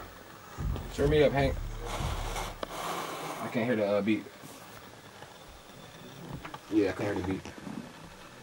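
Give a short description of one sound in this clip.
A young man sings into a microphone close by.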